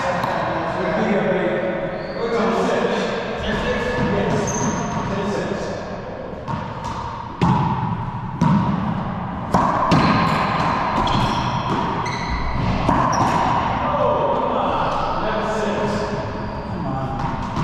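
Sneakers squeak on a hardwood floor.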